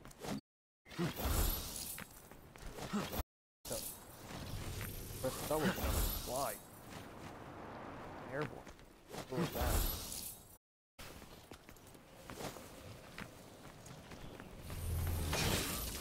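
Sword blows clash and thud in a fight.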